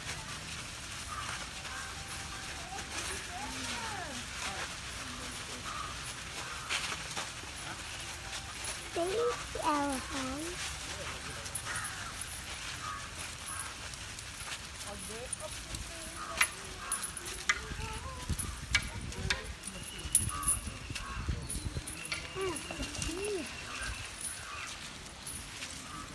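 Heavy elephant footsteps thud and scuff on dry dirt.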